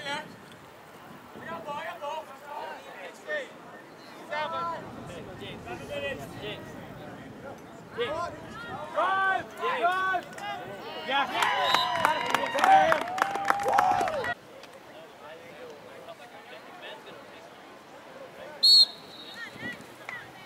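Young men shout and cheer loudly outdoors from a short distance.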